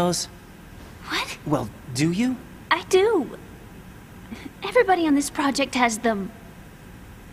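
A young woman speaks softly and hesitantly.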